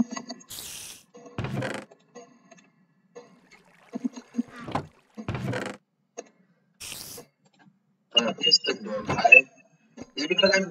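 A wooden chest creaks open and thuds shut.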